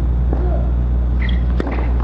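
A tennis racket strikes a ball on a serve.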